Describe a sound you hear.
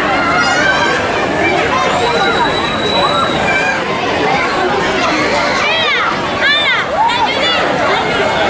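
A large crowd of children and adults chatters outdoors.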